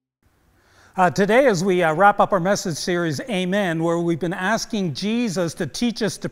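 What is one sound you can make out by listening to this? An older man speaks with animation through a microphone.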